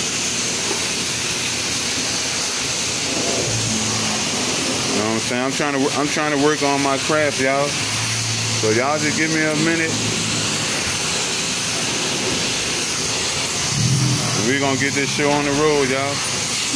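A pressure washer sprays a hissing jet of water against a car's metal panels.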